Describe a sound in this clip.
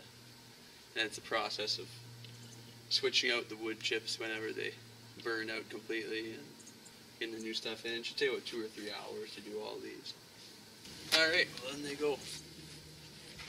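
A young man talks calmly and close by.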